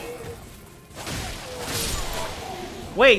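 A magic blast bursts with a bright shimmering whoosh.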